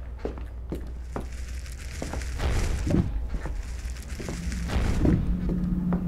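A fiery beam roars and crackles.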